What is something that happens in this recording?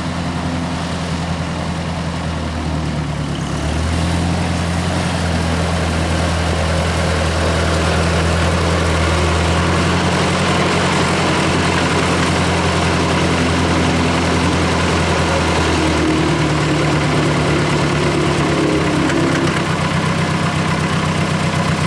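An old tractor engine chugs steadily close by.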